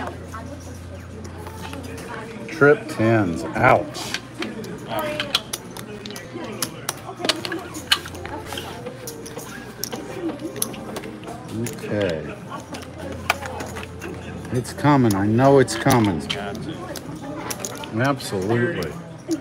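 Casino chips click and clatter as they are stacked and moved.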